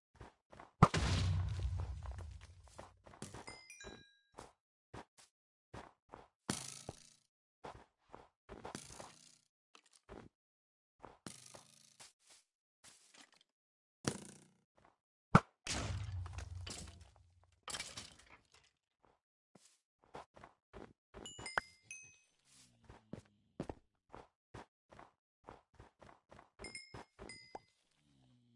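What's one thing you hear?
Footsteps crunch on snow at a steady walking pace.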